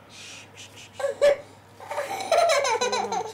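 A small child cries.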